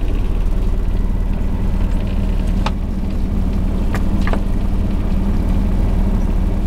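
A fishing net rustles as it is hauled aboard a boat.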